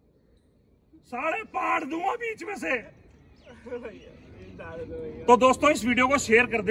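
A man talks loudly and with animation close by.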